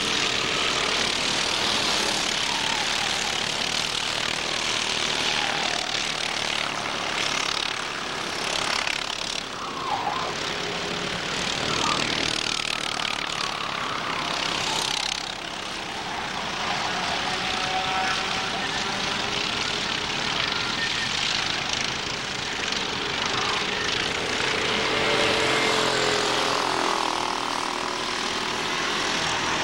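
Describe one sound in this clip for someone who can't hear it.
Kart engines whine and buzz as karts race past.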